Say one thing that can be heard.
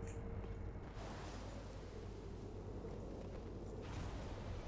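Flames whoosh and roar in a sudden burst.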